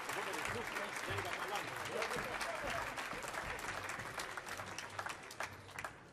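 An audience applauds in a large hall, the clapping thinning out toward the end.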